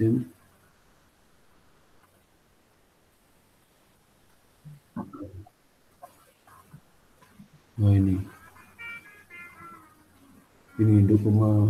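A middle-aged man speaks calmly into a microphone, with pauses.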